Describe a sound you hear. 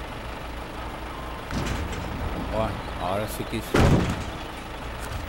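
Logs thud and clatter as they are loaded onto a truck bed.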